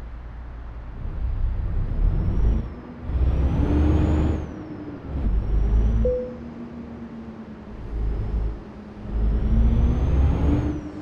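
A truck engine revs up and down in loud surges.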